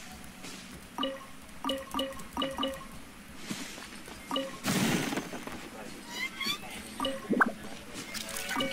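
Game chimes ring as items are picked up.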